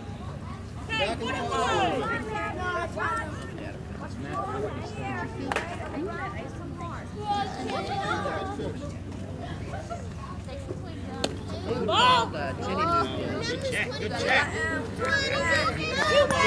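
Young girls shout and cheer nearby outdoors.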